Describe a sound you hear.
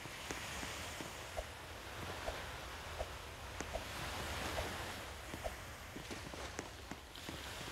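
Quick footsteps patter across grass and wooden planks.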